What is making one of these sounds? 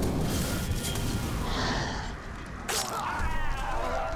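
Blades strike and clash in a close fight.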